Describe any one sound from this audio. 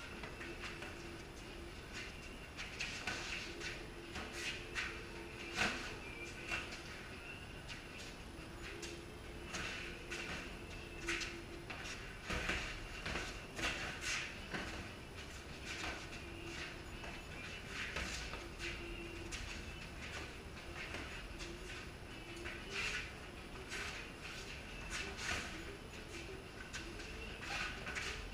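Sneakers shuffle and squeak on a concrete floor.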